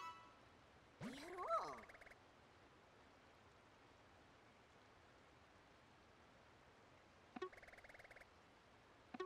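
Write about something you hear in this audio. Short electronic chimes sound in quick bursts.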